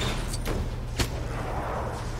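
A gun fires a single sharp shot.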